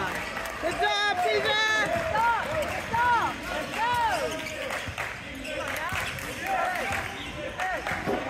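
A basketball bounces on the court with echoing thuds.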